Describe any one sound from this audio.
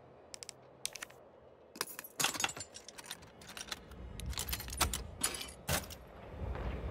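A padlock clicks and clanks.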